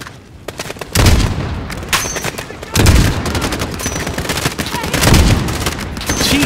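Heavy rifle shots boom loudly.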